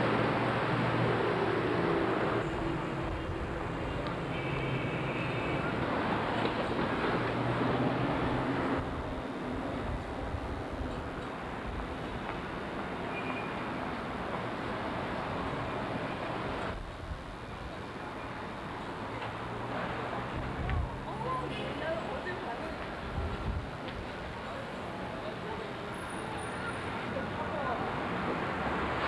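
A busy street hums with traffic and crowd noise outdoors.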